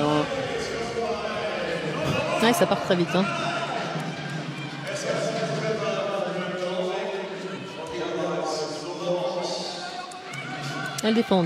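A crowd cheers in a large echoing hall.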